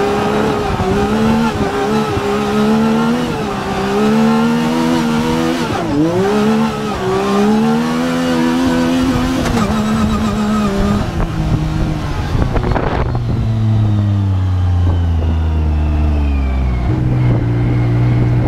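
An off-road vehicle's engine revs and drones, rising and falling close by.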